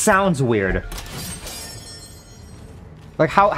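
A bright magical chime shimmers and fades.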